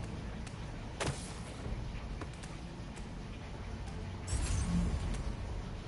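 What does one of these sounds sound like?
Sharp swishing zips of a web line shoot out.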